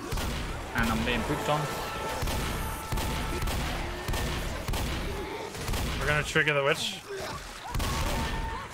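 Shotgun blasts boom in quick succession.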